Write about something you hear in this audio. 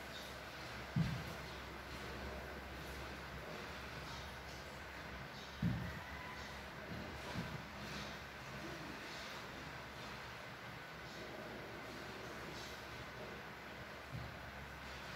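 Objects knock softly against a table.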